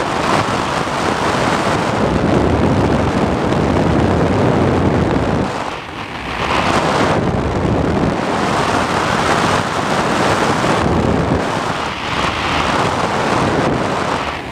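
Loud wind rushes past steadily, rising and falling in gusts.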